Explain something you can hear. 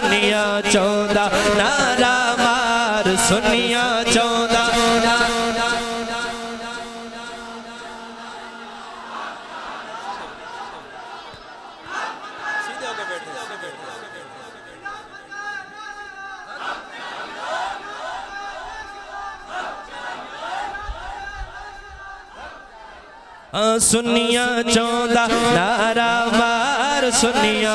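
A man sings a devotional chant loudly into a microphone, echoing through a loudspeaker.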